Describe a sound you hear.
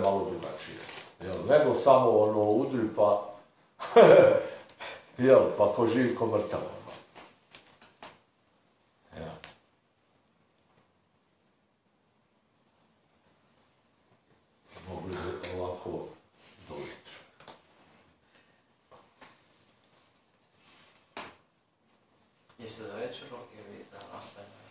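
A middle-aged man speaks with animation, close by, with pauses.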